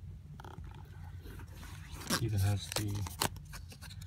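A zipper is pulled open.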